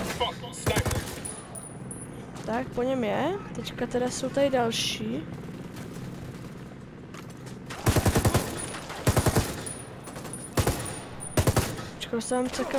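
A rifle fires in short, rapid bursts.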